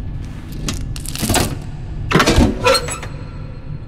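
A metal panel door clanks open.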